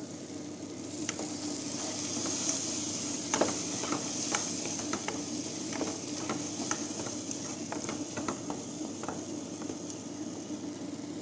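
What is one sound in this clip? Frying tomato sauce sizzles in a pan.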